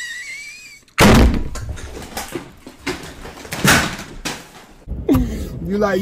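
Several men laugh loudly.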